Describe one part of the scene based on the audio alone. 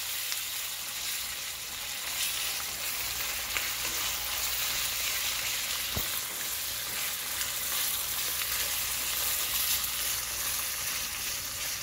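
Onions sizzle as they fry in oil.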